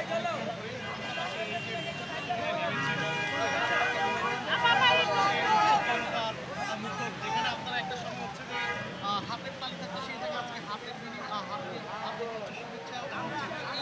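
A crowd of people chatters close by, outdoors in a busy street.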